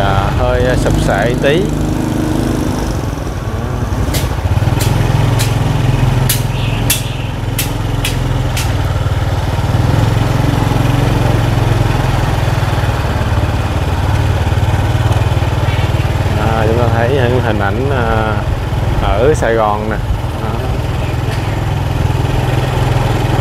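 A motorbike engine buzzes past nearby.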